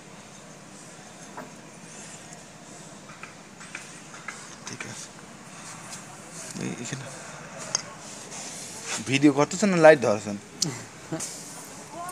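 Metal parts clink lightly as they are handled.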